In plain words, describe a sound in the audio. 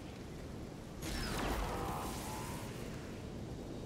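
A magic lightning spell crackles and zaps.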